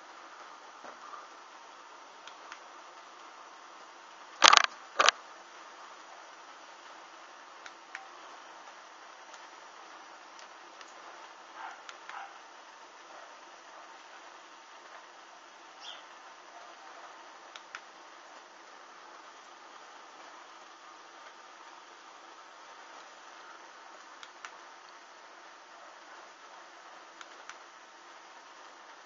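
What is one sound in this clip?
Small flames crackle and hiss softly as fabric burns.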